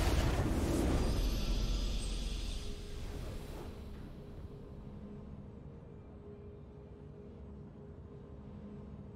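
A triumphant victory fanfare plays and fades.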